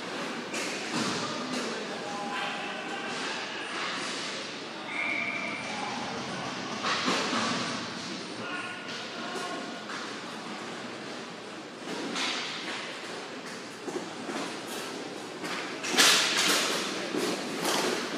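Plastic wheels of inline skates roll and scrape on a hard floor in a large echoing hall.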